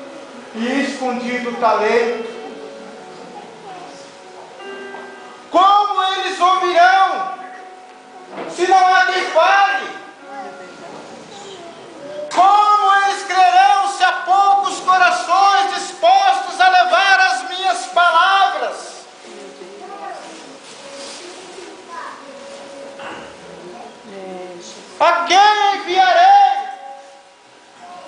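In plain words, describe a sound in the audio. A young woman wails and sobs loudly nearby, in bursts.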